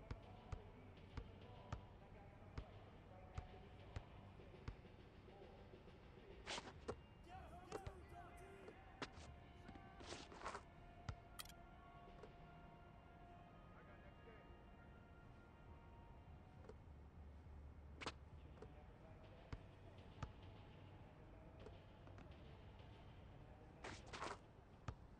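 A basketball bounces on a hard court in quick, regular thumps.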